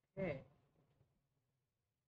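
A young man says a few words close to a microphone.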